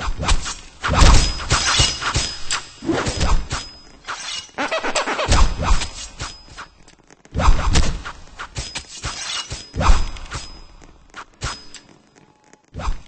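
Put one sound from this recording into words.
Blows land in quick, sharp thuds during a scuffle.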